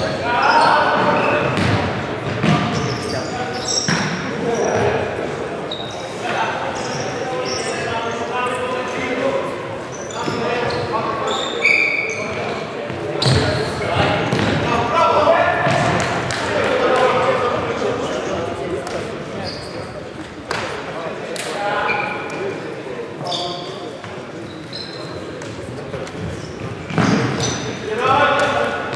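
A futsal ball is kicked with a thud.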